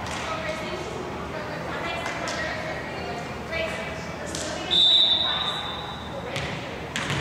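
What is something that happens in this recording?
Young girls shout and call out in a large echoing gym.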